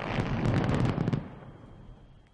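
A blast roars and rumbles, then fades.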